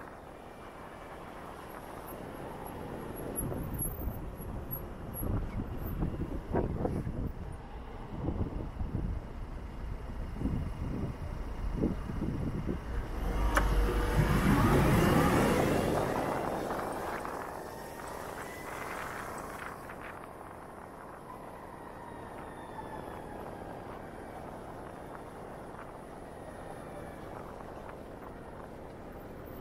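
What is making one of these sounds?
Wind rushes past as the motorcycle rides along.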